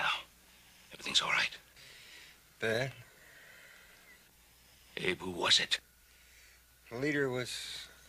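An older man speaks in a low, tense voice, in short bursts.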